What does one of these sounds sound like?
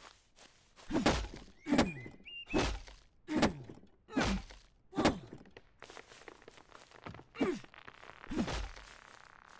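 An axe chops into wood with sharp, heavy blows.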